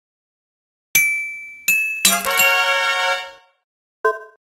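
A short cheerful chime jingle plays.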